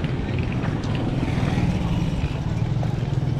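A motorcycle engine rumbles as it passes nearby.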